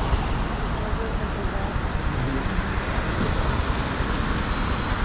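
Tyres roll over the road with a steady low rumble.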